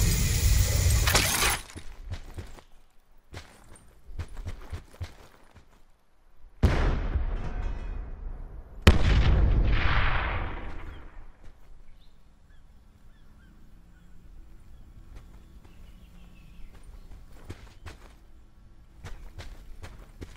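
Footsteps rustle through tall grass and leaves.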